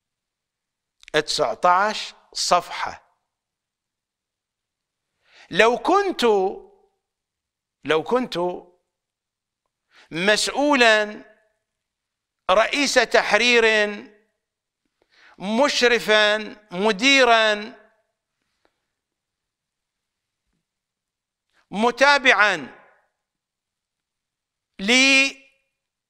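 An elderly man speaks with animation into a close microphone, in short bursts with pauses.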